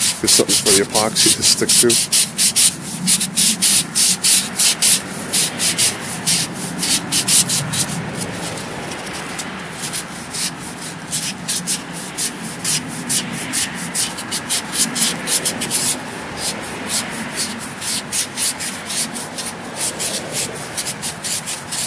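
Tape crackles and rips as it is unwound and wrapped.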